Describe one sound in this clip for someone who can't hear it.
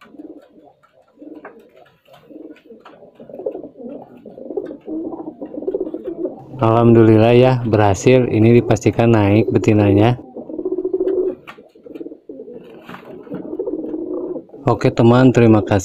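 Pigeons coo in low, throaty rumbles close by.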